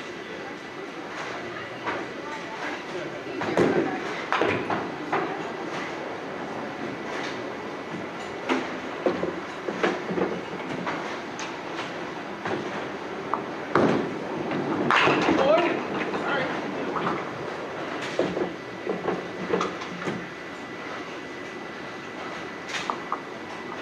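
Bowling balls and pins rumble and clatter from nearby lanes.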